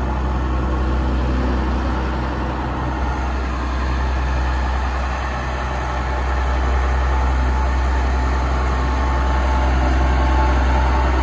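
Tyres crunch over packed dirt.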